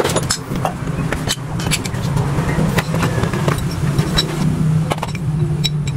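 A cardboard box rustles as it is opened.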